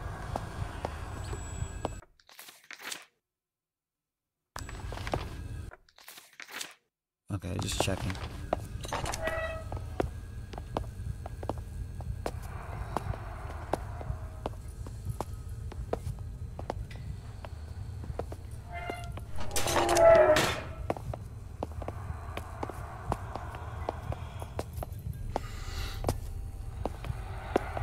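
Footsteps slowly pace along a hard floor.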